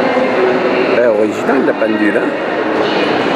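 A woman talks nearby in a large echoing hall.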